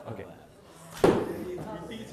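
A bowstring snaps as an arrow is released.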